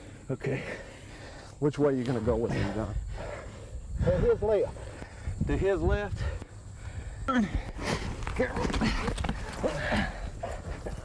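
Bodies scuffle and thump on grass.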